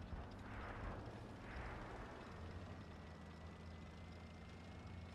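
A game's heavy tank engine rumbles low as the tank drives.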